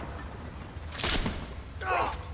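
A heavy blow lands with a sharp thud.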